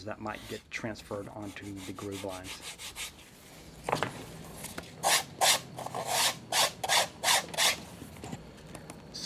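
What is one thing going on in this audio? A sanding block rubs along a leather edge.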